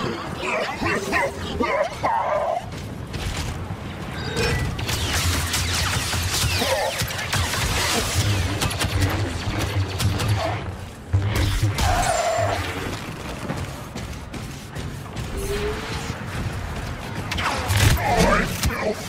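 Lightsabers hum and swish in quick swings.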